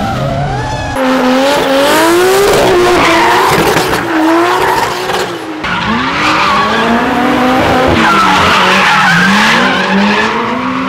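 Tyres squeal as a car slides.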